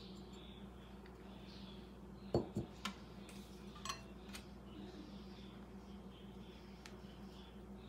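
Flour pours softly from a bowl into a larger bowl.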